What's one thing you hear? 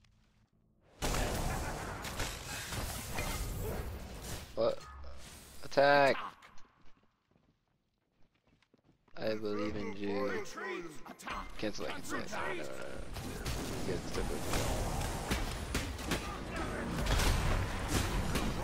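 Magic blasts and whooshes ring out in a fast fight.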